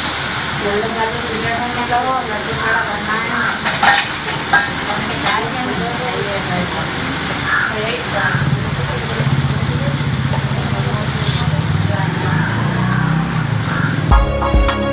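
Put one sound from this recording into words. Glass bangles clink against each other.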